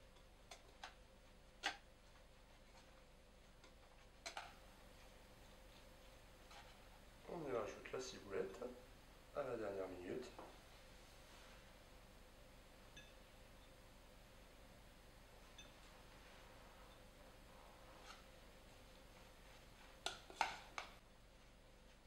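A spoon clinks against a metal bowl.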